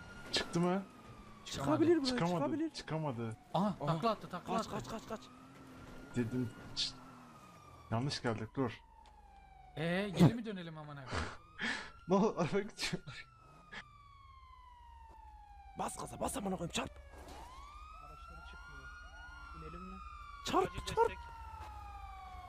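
A police siren wails nearby, its pitch sliding down and up.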